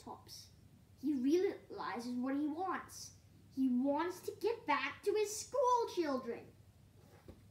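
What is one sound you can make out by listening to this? A young boy reads aloud close by.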